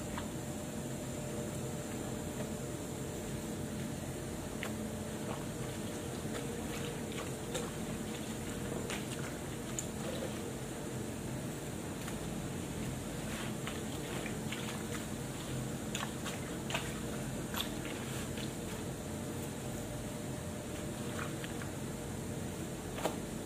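Wet clothes slosh and rub as they are washed by hand.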